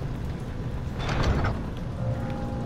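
A heavy wooden door rattles and stays shut.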